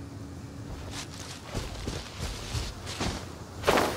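Quick footsteps patter over grass.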